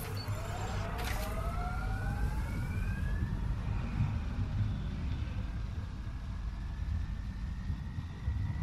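A vehicle engine rumbles low and steady as it drives.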